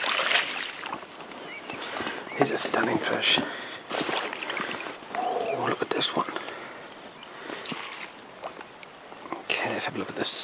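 Small waves lap against a boat.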